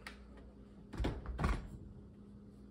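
An oven door swings shut with a thud.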